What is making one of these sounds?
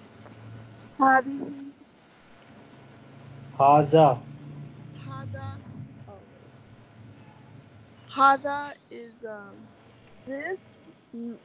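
A woman speaks slowly and clearly over an online call, pausing between words.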